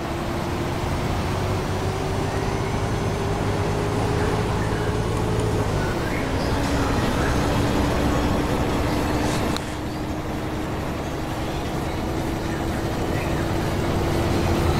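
A heavy engine hums steadily, dropping in pitch as the vehicle shifts gear.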